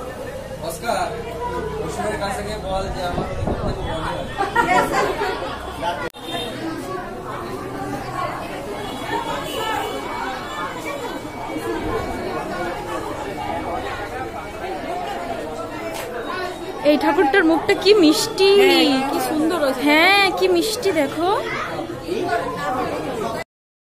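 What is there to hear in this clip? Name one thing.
A crowd of people chatters all around indoors.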